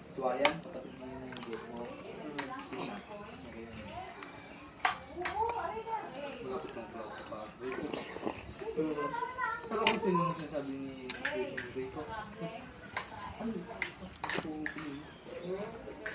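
A young girl sips and gulps from a plastic bottle close by.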